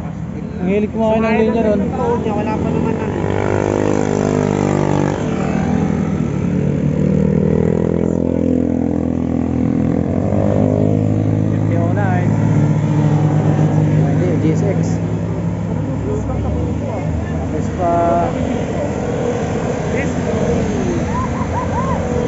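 Motorcycle and scooter engines rev and drone as they pass close by.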